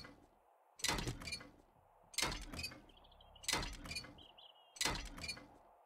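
A heavy wrench bangs against a metal refrigerator.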